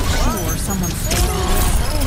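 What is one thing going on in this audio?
A laser beam hums and crackles.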